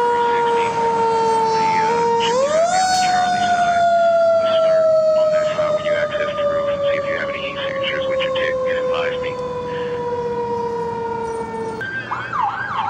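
An emergency siren blares steadily, then slides higher and slowly drops in pitch as it passes.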